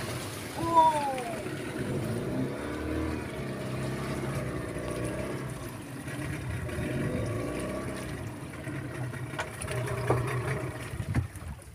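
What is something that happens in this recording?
Water laps against the hull of a wooden outrigger boat.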